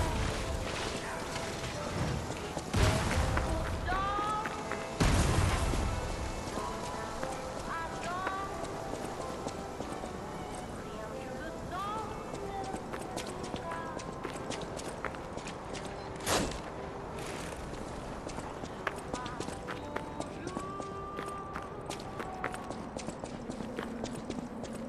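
Footsteps run over stone.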